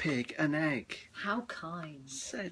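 A young woman reads out close by.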